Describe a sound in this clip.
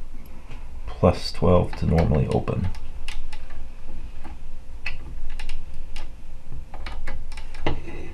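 Small wire connections click and rustle as hands handle them.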